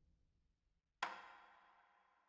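A short menu chime sounds once.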